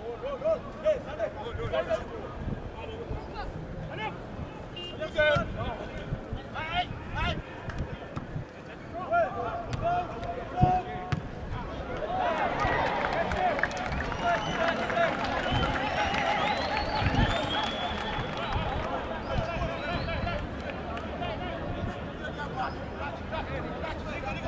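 Football players shout to each other across an open pitch.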